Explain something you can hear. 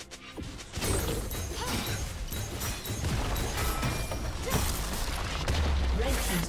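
Fantasy battle sound effects zap, clash and boom rapidly.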